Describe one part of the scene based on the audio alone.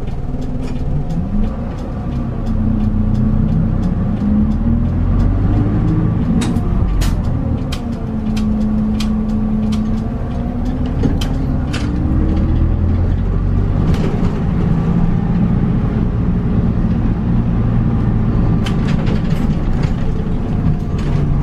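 A diesel city bus pulls away and accelerates through its gears.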